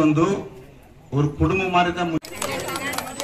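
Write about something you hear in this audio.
A man speaks to a gathering through a microphone.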